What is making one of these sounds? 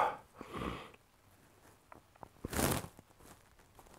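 A man exhales slowly and audibly.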